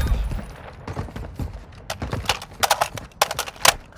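Metal clicks and clacks as a rifle is handled.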